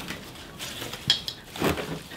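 Soil rustles as a pot is handled.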